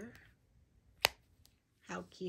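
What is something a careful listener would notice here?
A plastic case snaps open with a click.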